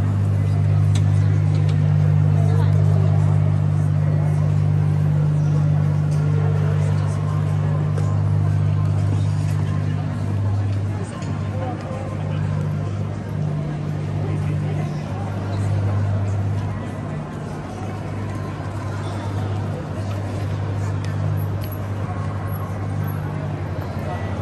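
Men and women chatter in the background outdoors.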